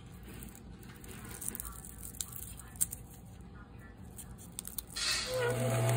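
Fingers peel a garlic clove with a papery crackle.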